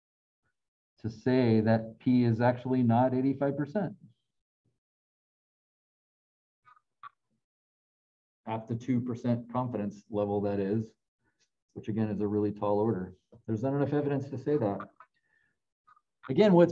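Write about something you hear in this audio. A man speaks calmly through a microphone, as on an online call.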